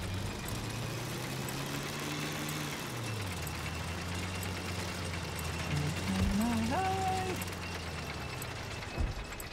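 A tracked vehicle's engine rumbles and whines as it drives.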